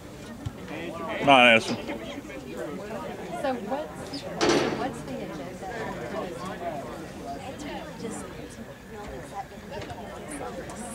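Spectators chatter nearby outdoors.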